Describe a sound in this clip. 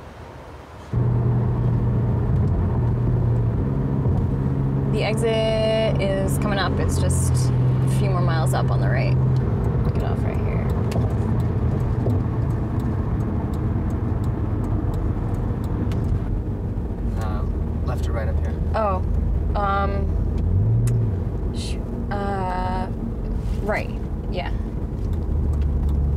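A car engine hums steadily inside the car.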